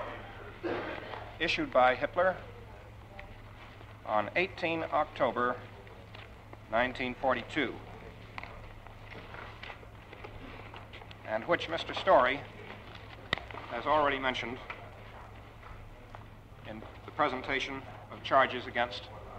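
A man speaks slowly and formally into a microphone, in phrases with long pauses.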